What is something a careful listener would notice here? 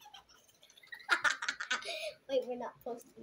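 A young girl laughs loudly close to a microphone.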